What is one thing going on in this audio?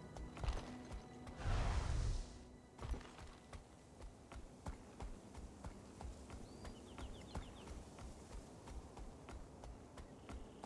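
Footsteps run steadily over grass.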